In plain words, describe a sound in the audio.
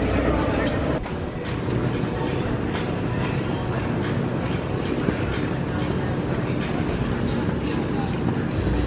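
Heavy ropes slap rhythmically against the floor.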